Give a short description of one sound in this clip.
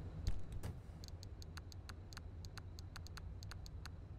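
Soft game menu clicks sound in quick succession.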